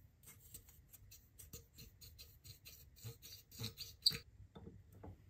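Metal clicks and ticks rapidly as a rusty screw is turned by hand.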